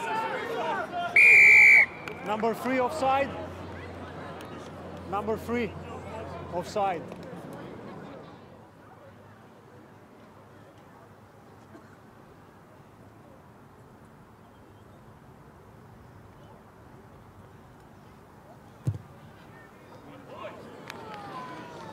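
A large crowd murmurs in the distance outdoors.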